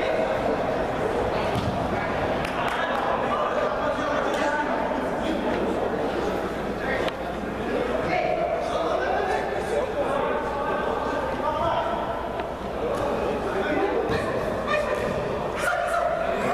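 Players shout to each other across a large echoing indoor hall.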